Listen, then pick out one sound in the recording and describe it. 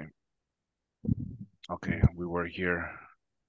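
An elderly man speaks over an online call.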